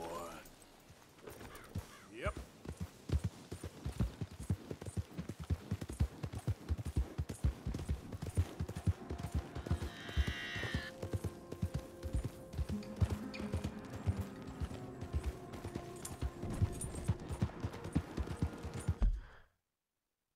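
Horse hooves pound steadily on grass and dirt at a gallop.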